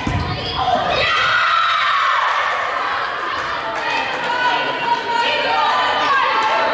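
Young women shout and cheer in a large echoing hall.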